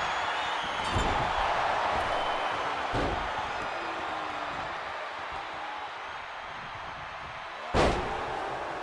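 A heavy body slams onto a wrestling mat with a loud thud.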